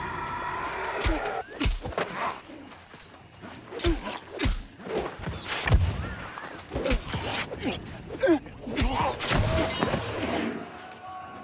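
Sword blows clash and thud in a fight.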